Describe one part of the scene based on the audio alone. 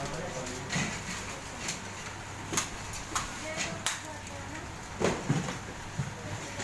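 Small plastic parts click and clatter as hands sort them.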